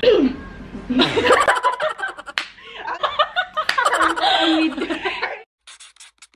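Several young women laugh loudly together.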